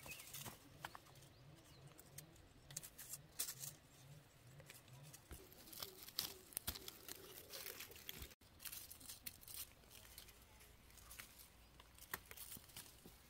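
Leaves rustle and stems crackle as hands handle plants close by.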